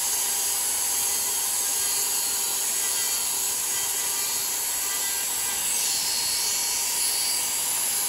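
A small rotary tool whines steadily as it grinds.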